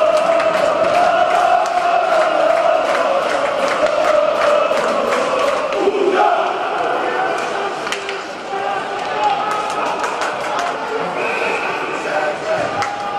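Hockey sticks click against the puck and each other.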